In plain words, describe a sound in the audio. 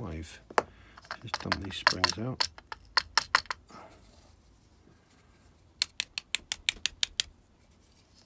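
Small metal lock parts click and tap as they are handled.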